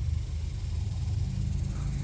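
A hand scrapes and crumbles dry soil.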